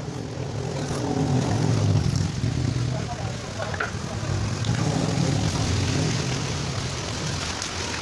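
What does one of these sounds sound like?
A motorbike engine rumbles past.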